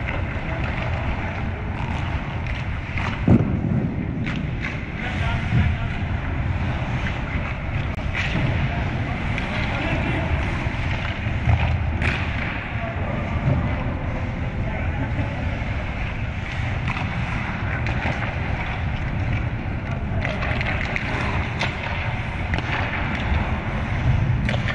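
Ice skates scrape across ice close by, in a large echoing hall.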